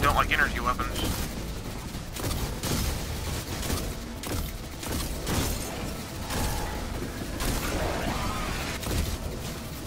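Electric bolts crackle and zap.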